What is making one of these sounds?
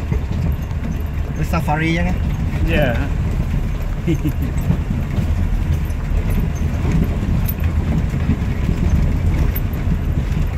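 Tyres roll and bump over a rough dirt road.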